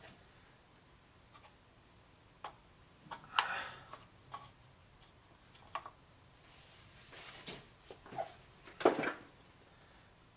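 Paper cups are lifted and set down with light knocks on a wooden surface.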